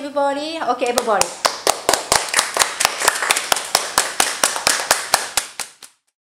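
Children clap their hands in a steady rhythm.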